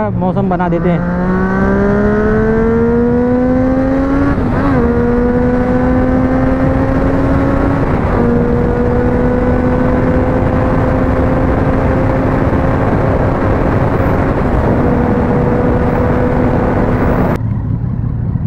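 A motorcycle engine hums steadily, climbing in pitch as it speeds up and dropping at each gear change.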